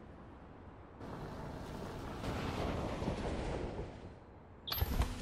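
A van drives up with its engine humming.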